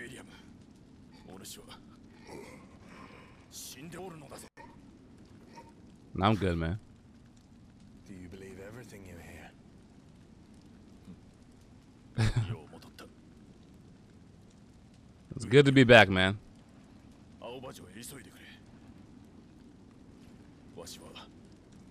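A young man speaks close into a headset microphone.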